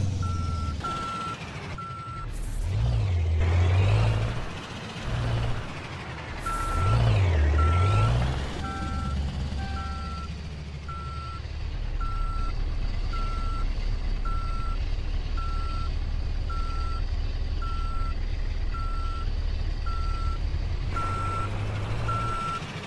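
A truck's reversing alarm beeps at a steady pace.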